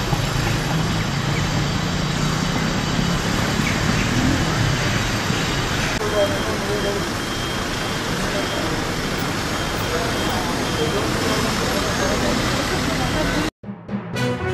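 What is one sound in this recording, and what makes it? Traffic hums steadily on a busy street outdoors.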